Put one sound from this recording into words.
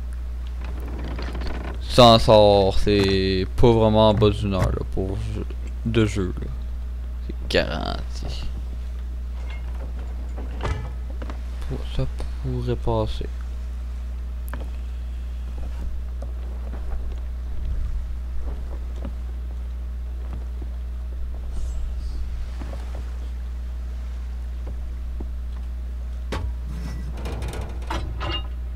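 Waves lap steadily against a wooden ship's hull.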